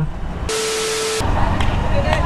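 An electronic tone sounds steadily.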